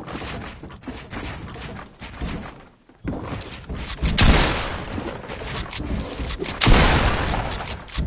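Wooden building pieces clack into place in a video game.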